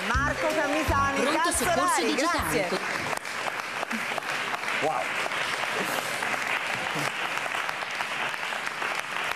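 A studio audience applauds steadily.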